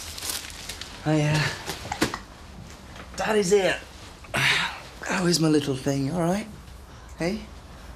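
A man speaks in a gentle voice.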